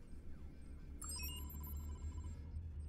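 Short electronic menu beeps and blips sound.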